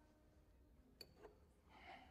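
A glass clinks softly on a table.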